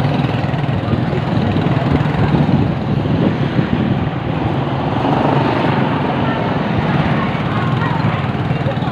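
A motorcycle engine putters steadily close by.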